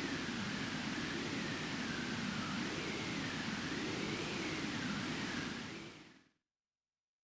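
A storm wind roars steadily and then fades away.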